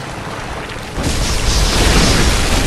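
A loud crashing roar of spray bursts out.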